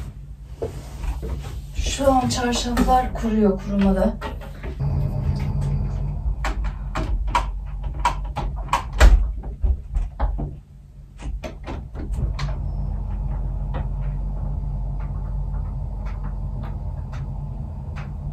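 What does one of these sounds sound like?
A cloth rubs and squeaks against window glass.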